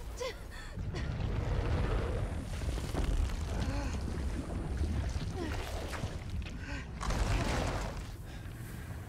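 Heavy debris crashes and rumbles in a large echoing hall.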